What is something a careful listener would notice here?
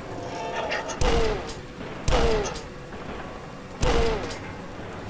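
A double-barrelled shotgun fires loud booming blasts.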